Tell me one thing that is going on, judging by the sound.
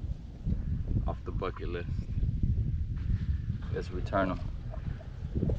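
A young man speaks casually, close to the microphone.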